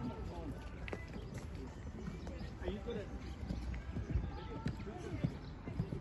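A horse's hooves thud on soft sand as it canters past nearby.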